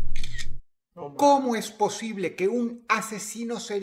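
A young man talks close to a microphone with animation.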